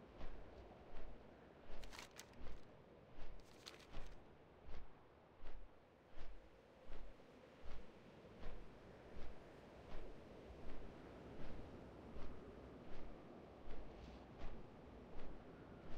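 Large wings beat in a steady, regular rhythm.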